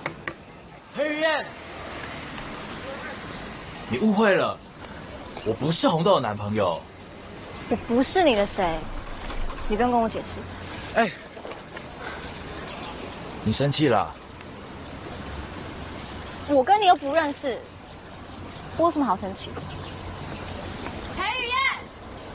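A young man speaks earnestly nearby.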